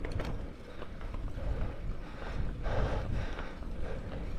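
A horse's hooves clop slowly on pavement.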